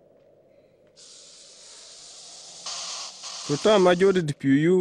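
A snake hisses.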